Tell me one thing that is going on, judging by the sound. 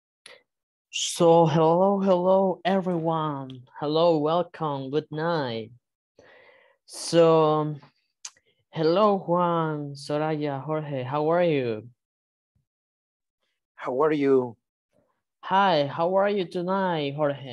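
A young man speaks through an online call.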